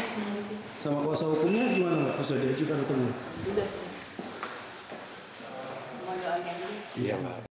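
A woman speaks briefly and calmly up close.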